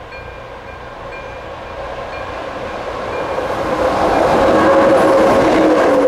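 An electric locomotive approaches, hauling a passenger train.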